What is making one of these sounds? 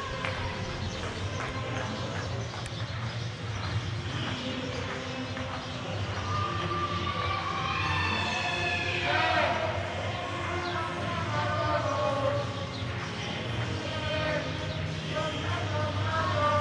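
Traffic hums on a city street below.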